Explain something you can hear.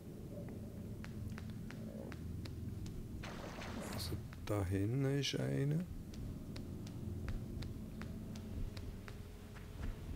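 Footsteps run quickly over rough ground.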